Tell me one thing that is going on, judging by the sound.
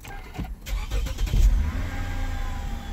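A car engine cranks and starts.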